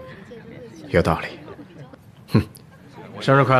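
A man speaks with a cheerful tone, close by.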